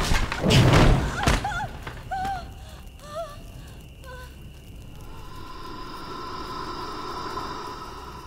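Flames crackle and burn.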